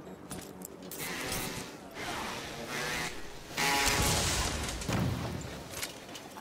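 Loud blasts boom and rumble.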